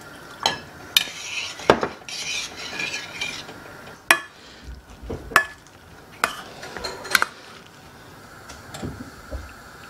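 A spoon scrapes and stirs food in a saucepan.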